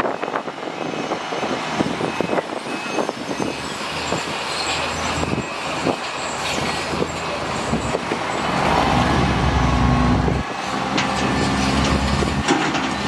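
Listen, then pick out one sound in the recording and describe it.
A diesel truck engine runs loudly nearby.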